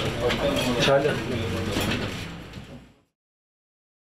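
A man speaks calmly into a microphone as the voice fades out.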